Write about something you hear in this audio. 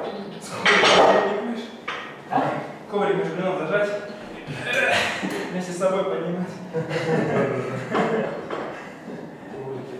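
Metal weight plates clank against each other.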